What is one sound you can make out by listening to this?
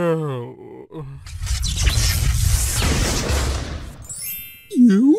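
A loud whoosh sweeps past.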